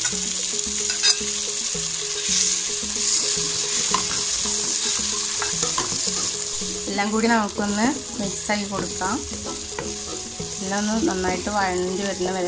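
A spatula scrapes and stirs against a pan.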